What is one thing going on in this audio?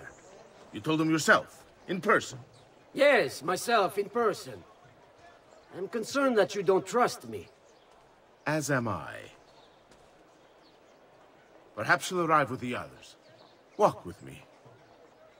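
A middle-aged man speaks in a low, firm voice close by.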